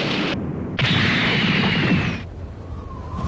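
A loud rushing whoosh of energy surges and then cuts off.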